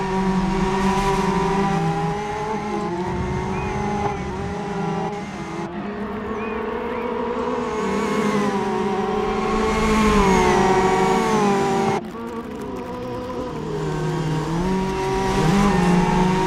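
Tyres squeal on wet tarmac.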